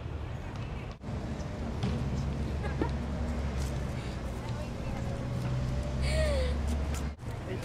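Young women laugh close by.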